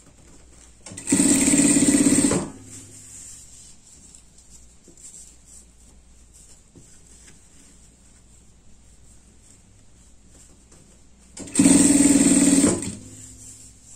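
An industrial sewing machine stitches through fabric in short bursts.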